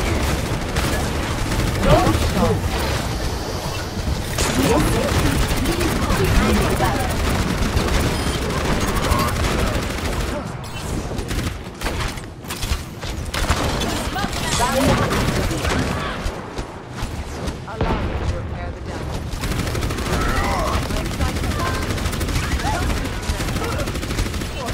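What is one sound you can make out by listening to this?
A game energy weapon fires in rapid bursts.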